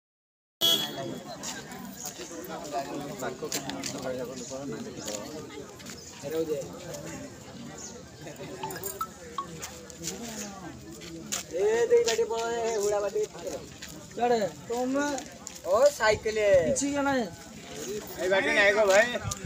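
A crowd murmurs and talks outdoors.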